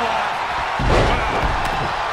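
A heavy body thuds onto a wrestling ring mat.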